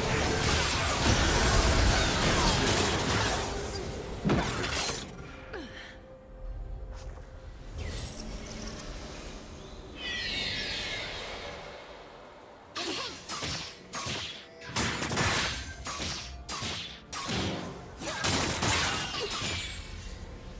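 Magic spells whoosh and crackle.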